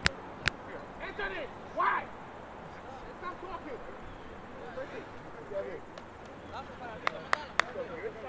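Young men call out and talk outdoors at a distance.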